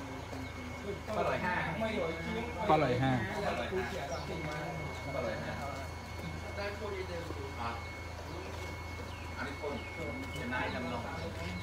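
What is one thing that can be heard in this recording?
Several men talk nearby in a lively way.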